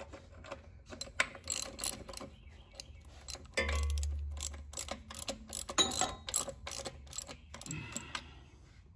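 A ratchet wrench clicks rapidly as a bolt is turned.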